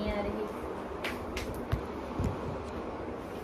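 A hand bumps and rubs against the phone, making close knocks.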